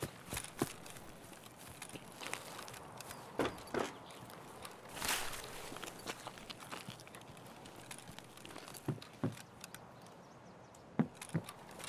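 Footsteps thud slowly over grass and then onto wooden boards.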